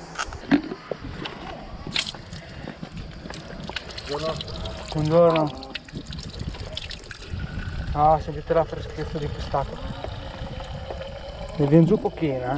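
Water trickles from a tap into a bottle.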